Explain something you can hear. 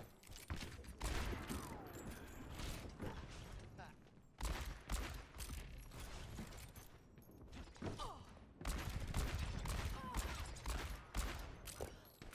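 A revolver fires sharp, loud shots in quick bursts.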